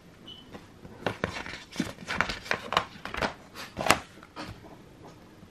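A glossy paper page rustles and crinkles.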